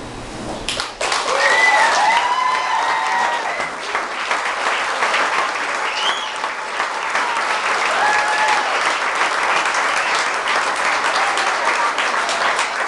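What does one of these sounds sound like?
An audience claps and cheers loudly in a room.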